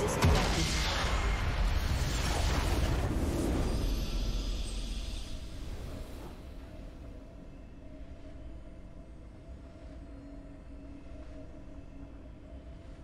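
A game's victory fanfare swells and then fades into soft music.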